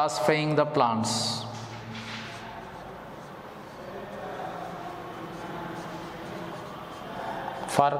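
A man speaks calmly, as if lecturing, close by.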